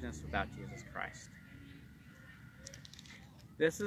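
Book pages rustle as a man turns them.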